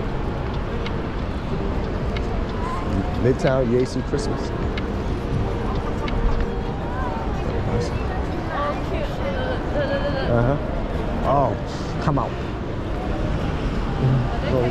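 A crowd murmurs and chatters around outdoors.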